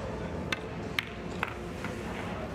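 Billiard balls clack against each other.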